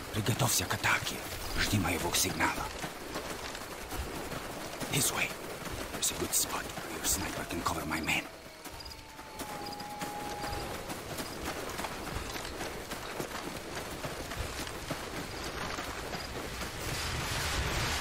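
Footsteps crunch quickly through grass and gravel.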